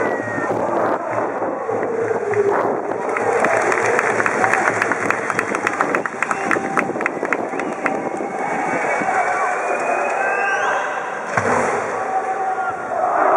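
A large crowd of young people chants and cheers together outdoors.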